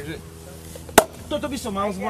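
A champagne cork pops loudly.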